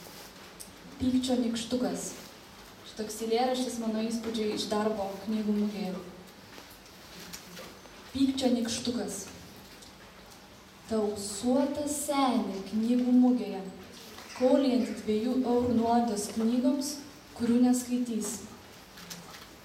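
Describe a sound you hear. A young woman reads aloud calmly into a microphone.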